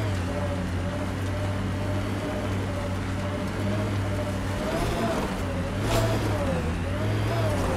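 A vehicle engine hums steadily with a whine that rises and falls in pitch.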